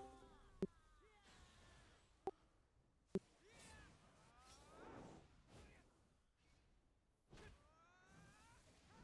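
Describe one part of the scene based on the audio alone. Magic spells whoosh and ring out in a battle.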